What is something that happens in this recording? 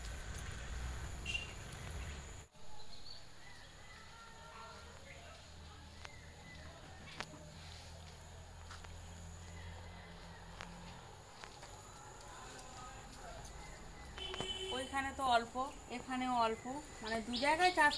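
Leaves rustle softly as a person plucks plants by hand.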